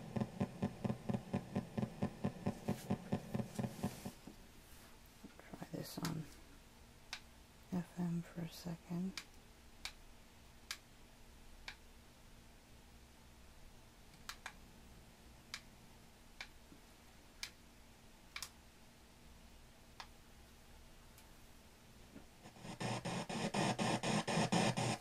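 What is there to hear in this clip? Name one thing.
Music with a steady, pounding beat plays loudly from a speaker, stops, then starts again.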